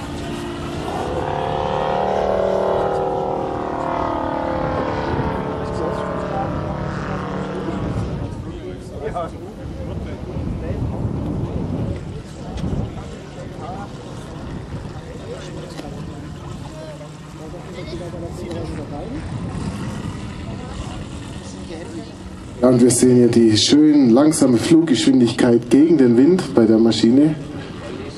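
A small propeller plane's engine drones overhead, rising and falling in pitch as it passes.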